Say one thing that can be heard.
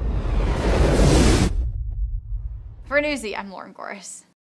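A huge explosion roars and rumbles deeply, then fades.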